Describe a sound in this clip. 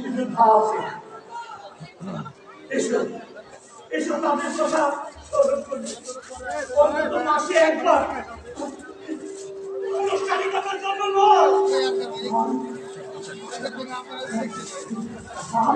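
A man declaims loudly and with emotion in a large space.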